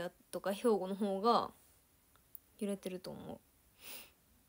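A young woman speaks softly and playfully close to a microphone.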